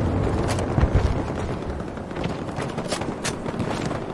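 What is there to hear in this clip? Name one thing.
A rifle's bolt and magazine click during a reload.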